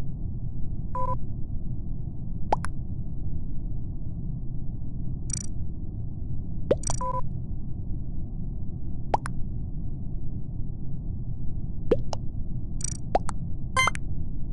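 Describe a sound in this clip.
Short electronic chimes ring out now and then as game messages pop up.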